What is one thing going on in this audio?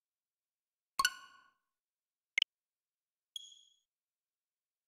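A game console's menu gives short chimes and clicks as options are selected.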